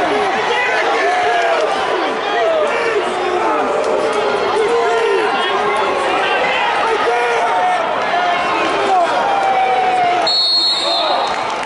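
A crowd of spectators chatters and shouts throughout a large echoing hall.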